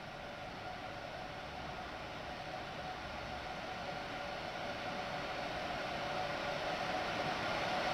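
An oncoming train grows louder as it approaches.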